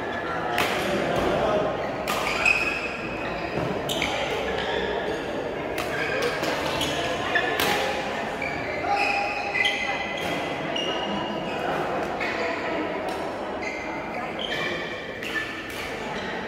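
Rackets smack a shuttlecock back and forth in a large echoing hall.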